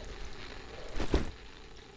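A quick whoosh sounds as a menu closes.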